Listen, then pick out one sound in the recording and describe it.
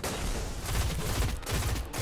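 An energy blast crackles and explodes.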